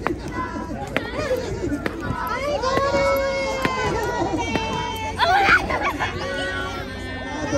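A crowd of children chant and shout together outdoors.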